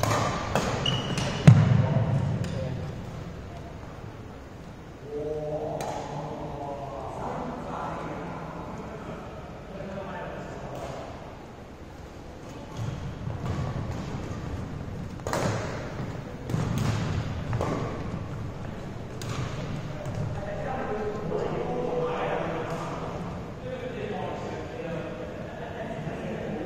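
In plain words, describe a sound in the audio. Shuttlecocks are hit with sharp taps of badminton rackets.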